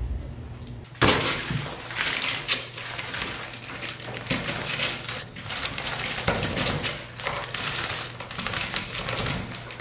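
A plastic shower curtain rustles and crinkles as it is handled.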